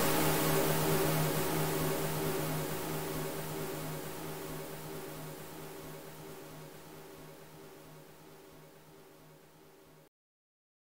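Wind howls through an open landscape and slowly fades.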